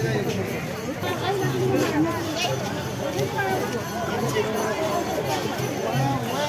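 A large crowd of men and women chatters all around outdoors.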